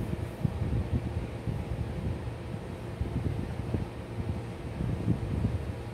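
A brush taps against a small ceramic dish.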